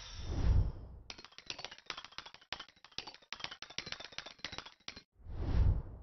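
A score counter ticks rapidly.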